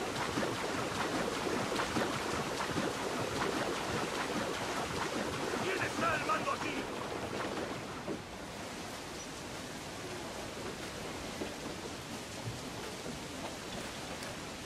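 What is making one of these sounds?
Rain patters steadily on the water.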